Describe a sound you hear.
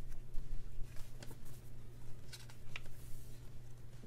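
A sticker sheet page flips over with a soft flap.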